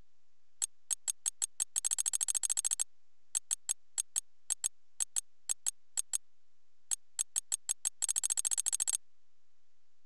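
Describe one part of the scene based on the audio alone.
Short electronic menu ticks sound in quick bursts.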